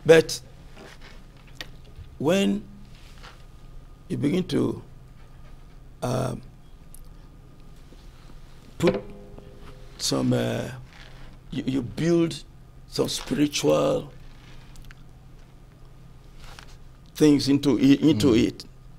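A man speaks slowly into a microphone, in short bursts with pauses.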